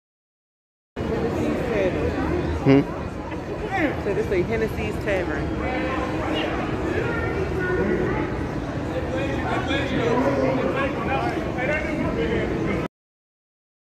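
A lively crowd chatters and calls out all around.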